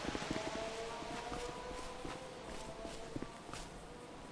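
Footsteps run across grass and pavement.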